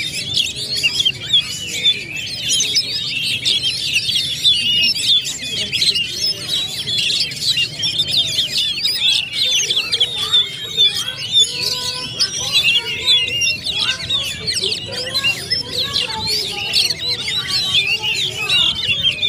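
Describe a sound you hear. Caged songbirds chirp and trill rapidly and continuously, close by.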